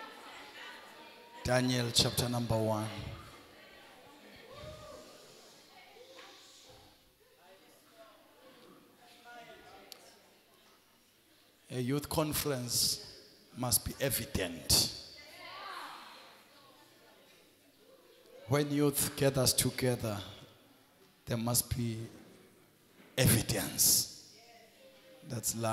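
A man preaches with animation through a microphone in a large echoing hall, in loud bursts between quieter pauses.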